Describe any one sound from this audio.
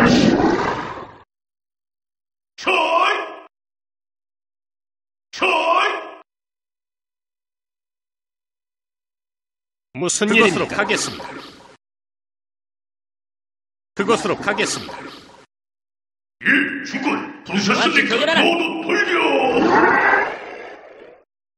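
Short bursts of game sound effects play one after another, with quiet gaps between them.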